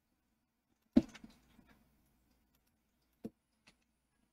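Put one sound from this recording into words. A block is set down with a short, soft thud.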